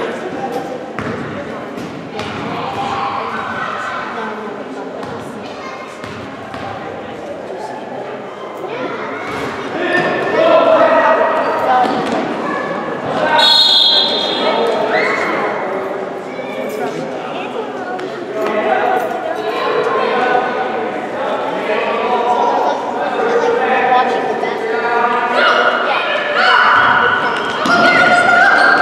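Young players shout and call out across an echoing hall.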